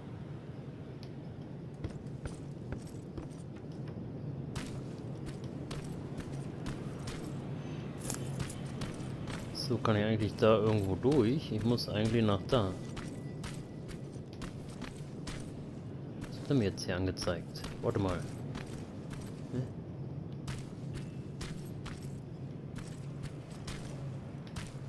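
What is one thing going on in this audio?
Footsteps crunch over rubble at a steady walking pace.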